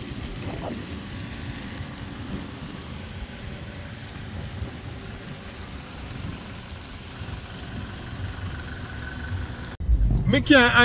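Cars drive past slowly on a wet road.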